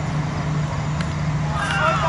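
A bat strikes a cricket ball with a sharp crack.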